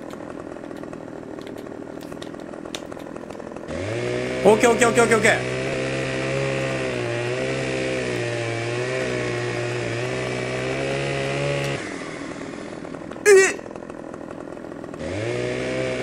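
A chainsaw engine idles.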